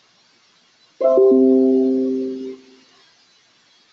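A computer notification chime rings out and fades.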